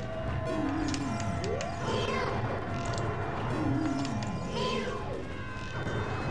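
A video game monster lets out repeated warbling cries.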